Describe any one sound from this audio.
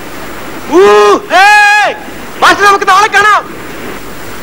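A man shouts loudly.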